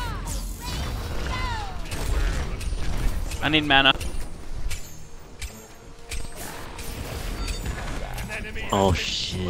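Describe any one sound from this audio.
Magic spells whoosh and crackle with bright chiming bursts.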